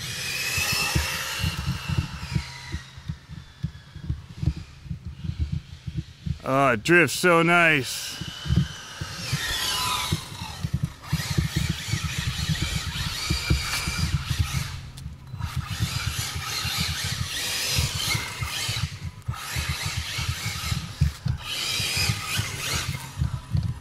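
Small tyres rumble over asphalt.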